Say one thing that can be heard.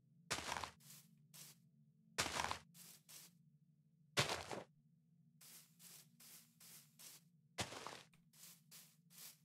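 Footsteps crunch rhythmically through grass.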